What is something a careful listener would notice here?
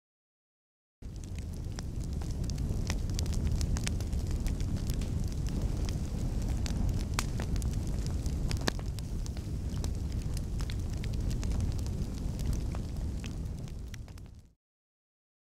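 Flames roar and crackle steadily.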